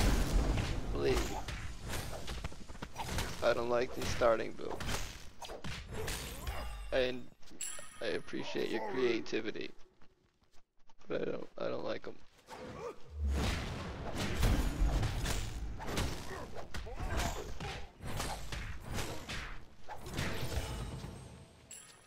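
Game combat effects clash and crackle with magic bursts.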